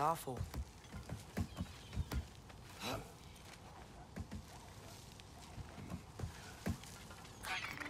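Hands and feet knock on a wooden ladder during a climb.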